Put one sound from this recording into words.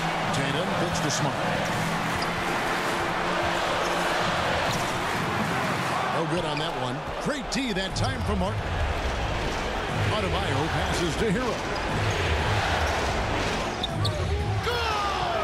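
A large crowd roars steadily in a big echoing arena.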